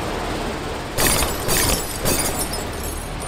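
A sharp burst of crashing impacts.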